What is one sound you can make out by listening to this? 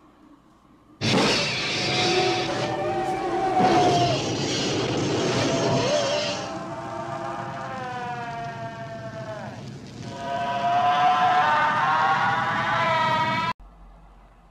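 A creature shrieks loudly with shrill, wavering cries.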